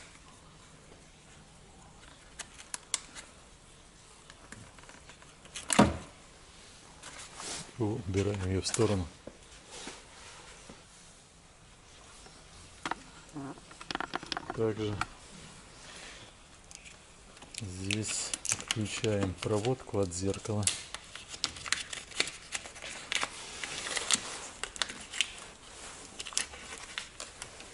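Plastic parts click and rattle as hands work on a car door.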